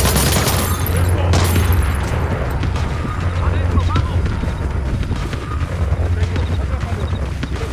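Quick running footsteps patter on hard ground.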